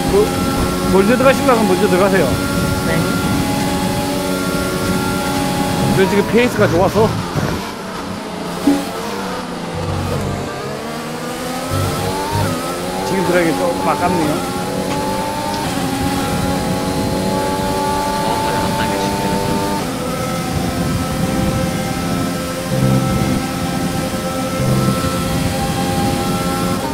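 A racing car engine screams steadily, rising in pitch and dropping sharply with each gear change.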